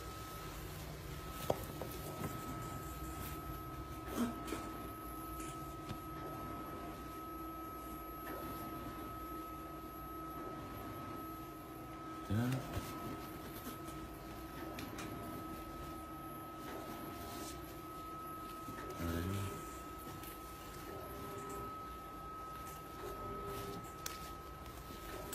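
Fabric rustles as hands handle a shirt.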